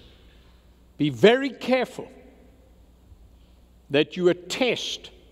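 An elderly man preaches emphatically through a microphone.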